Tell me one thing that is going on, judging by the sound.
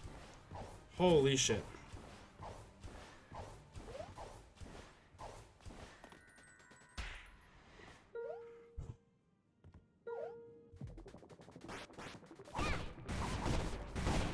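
Short electronic game sound effects chime and whoosh.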